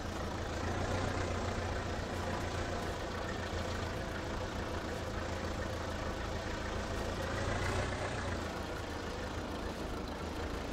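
A hay rake rattles as it turns over the grass.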